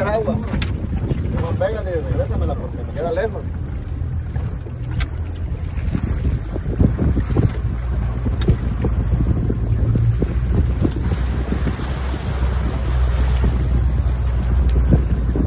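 Wind rumbles outdoors on open water.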